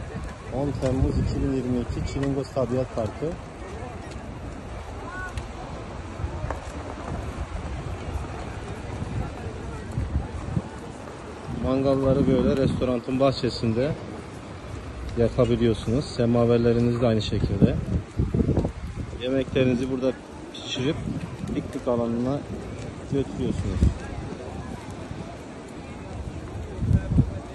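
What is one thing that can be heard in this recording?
A crowd of people talks in the background.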